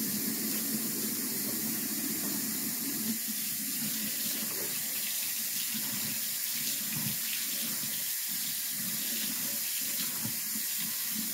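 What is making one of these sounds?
Water runs from a tap into a stainless steel sink.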